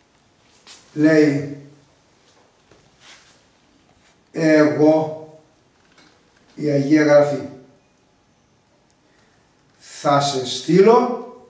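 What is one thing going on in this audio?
An elderly man speaks calmly in short, separate phrases, close by.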